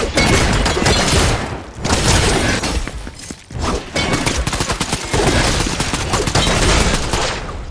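A pickaxe swings and strikes with sharp hits.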